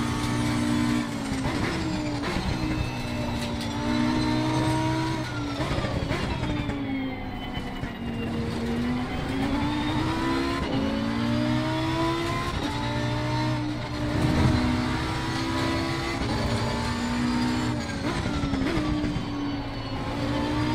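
Gear shifts snap sharply as the engine pitch drops.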